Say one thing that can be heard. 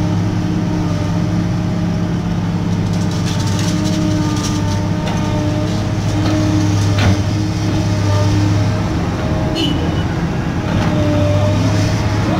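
A diesel engine rumbles steadily close by.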